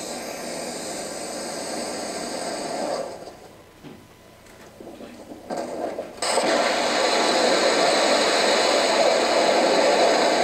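A rocket engine roars loudly.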